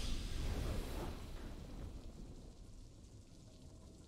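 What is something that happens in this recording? A triumphant game fanfare booms and slowly fades away.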